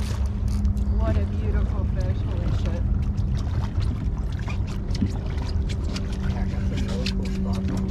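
Wind rumbles steadily across open water.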